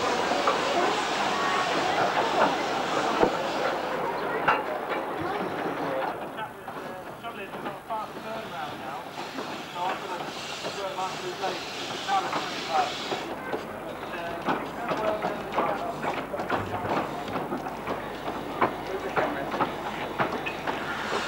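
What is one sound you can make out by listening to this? A small steam locomotive chuffs and hisses.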